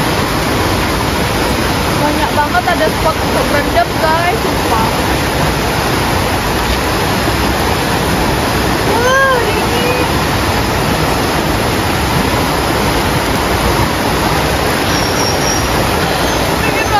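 A stream rushes steadily over rocks.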